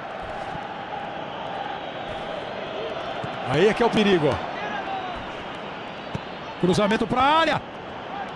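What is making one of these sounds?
A large stadium crowd murmurs and cheers steadily in the background.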